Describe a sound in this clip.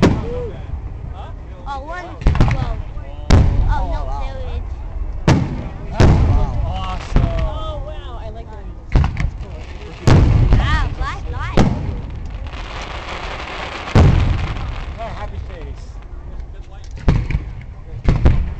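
Fireworks burst with loud booms that echo in the open air.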